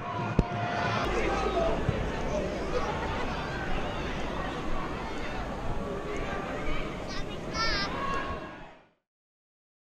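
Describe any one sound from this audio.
A stadium crowd murmurs and chatters in the open air.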